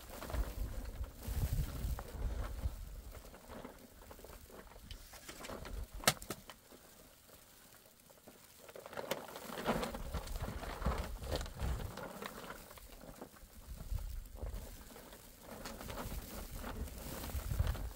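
A plastic sheet rustles and crackles as a woman pulls at it.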